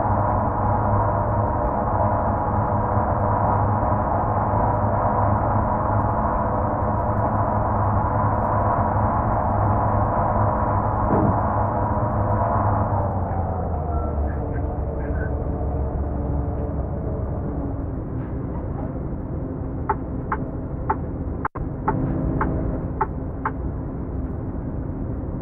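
A truck engine drones steadily, then eases off as the truck slows.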